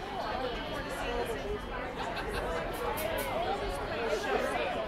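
Cymbals crash and shimmer on a drum kit.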